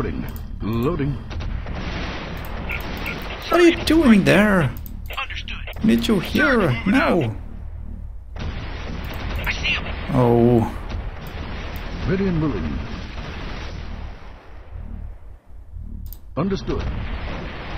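Small guns fire in quick bursts.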